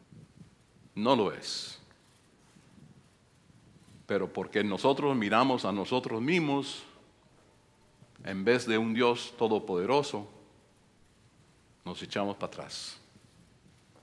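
An elderly man speaks with animation into a microphone, in bursts with pauses, in an echoing hall.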